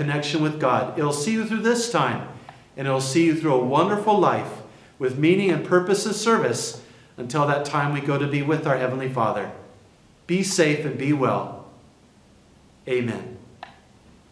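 A middle-aged man speaks calmly and clearly into a nearby microphone, in a slightly echoing room.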